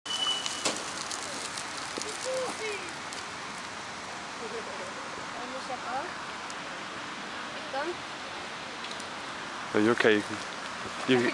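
People talk and call out at a distance outdoors.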